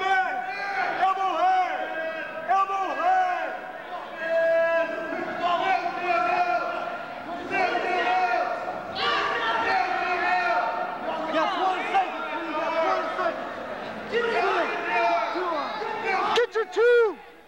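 A crowd of spectators shouts and cheers loudly in an echoing hall.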